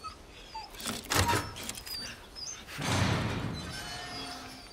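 A metal chain rattles against a gate.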